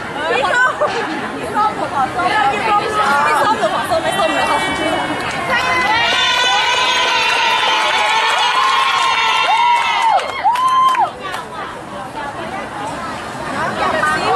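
Young men chatter and talk with animation close by.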